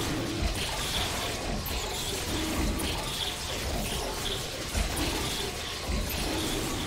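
A crackling electric beam buzzes steadily.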